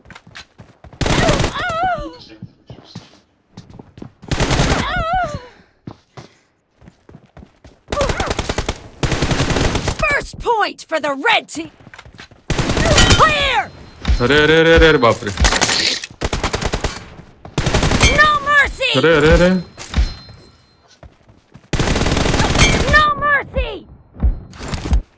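Rapid gunfire rattles in short bursts.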